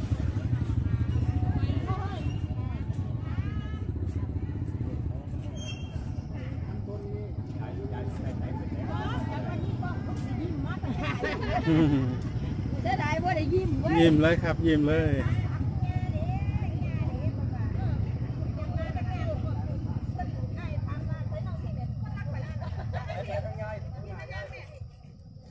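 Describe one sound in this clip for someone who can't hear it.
Motorcycle engines idle and putter nearby.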